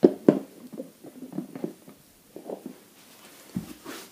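Small plastic toy figures topple one after another and clatter on a wooden floor.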